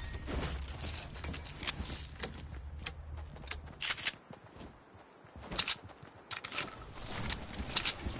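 Footsteps run across grass and floorboards.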